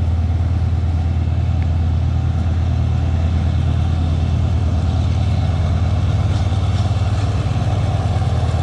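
Train wheels clatter rhythmically on the rails.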